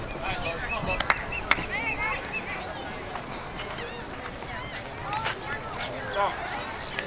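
Children call out across an open outdoor field.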